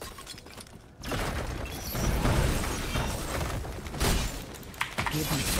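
Clashing fight noises from a game play in the background.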